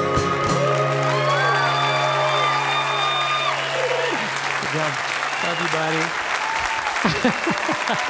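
A man talks through a microphone over applause.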